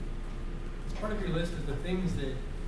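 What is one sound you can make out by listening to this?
A man speaks through a microphone in a large echoing room.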